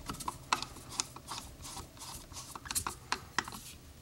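A screwdriver turns a screw in a metal carburetor body.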